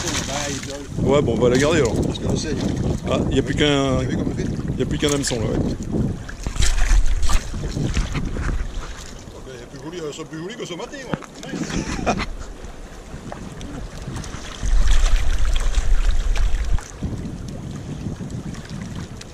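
A fish flaps and slaps against wet rocks.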